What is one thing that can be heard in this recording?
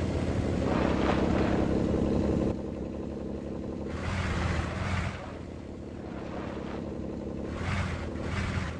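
Tyres crunch over loose rocks and gravel.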